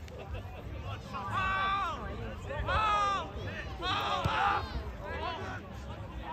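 Young women players shout and call to each other across an open field.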